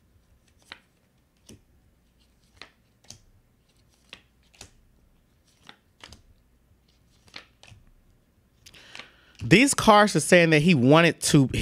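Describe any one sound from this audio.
Playing cards tap and click softly as hands shuffle and lay them down.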